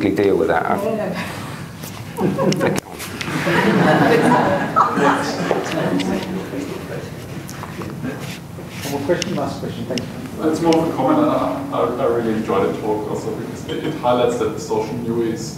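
A man speaks calmly and clearly to an audience in a room with some echo.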